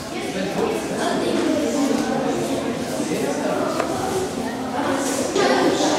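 A young boy talks cheerfully close by.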